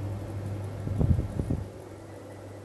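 A button on a plug-in meter clicks as a finger presses it.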